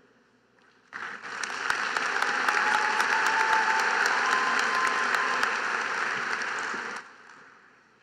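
A large crowd applauds and cheers in a big echoing arena.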